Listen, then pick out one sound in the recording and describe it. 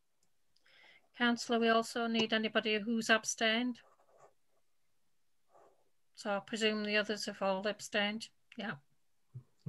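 An older woman speaks calmly, heard through an online call.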